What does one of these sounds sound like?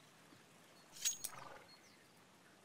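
A short metallic clatter sounds as a grenade is drawn.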